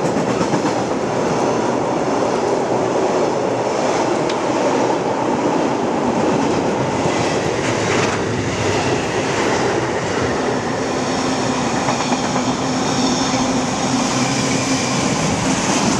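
Train wheels clatter rhythmically over the rails.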